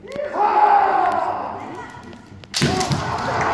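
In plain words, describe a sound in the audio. A man shouts long, drawn-out battle cries that echo in a large hall.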